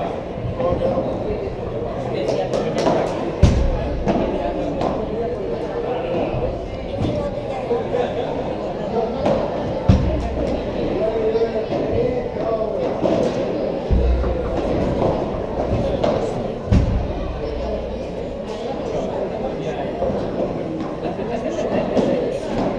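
A crowd of people chatter in a large echoing hall.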